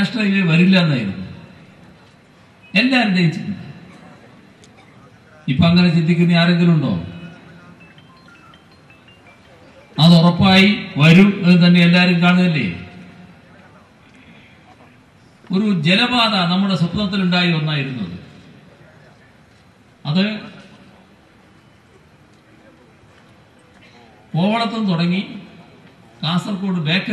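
An elderly man gives a speech through a microphone and loudspeakers, speaking forcefully in short bursts with pauses, with echo around him.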